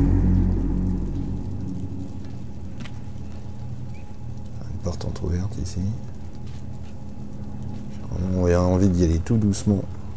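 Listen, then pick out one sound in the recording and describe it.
Small footsteps patter across a wooden floor.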